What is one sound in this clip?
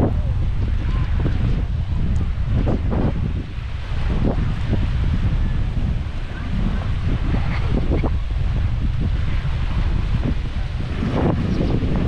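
Strong wind rumbles and buffets outdoors.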